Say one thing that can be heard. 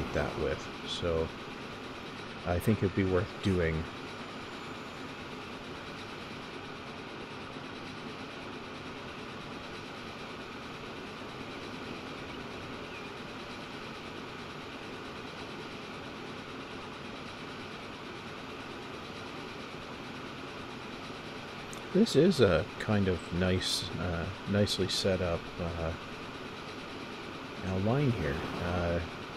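A train rolls steadily along the rails with a low rumble.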